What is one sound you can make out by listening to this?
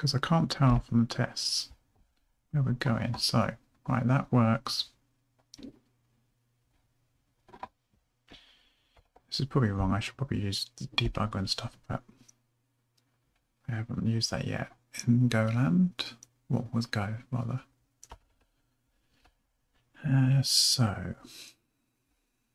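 A man speaks calmly and closely into a microphone, in bursts with pauses.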